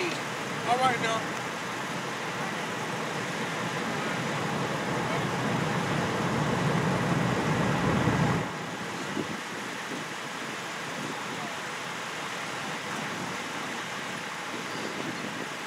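Wind blows outdoors, gusting loudly and then easing.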